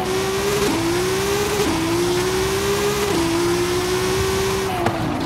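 A car engine revs high and climbs through quick gear shifts.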